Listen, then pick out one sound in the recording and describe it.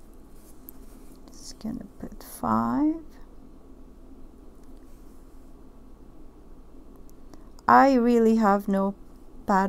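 Small glass beads click softly against each other.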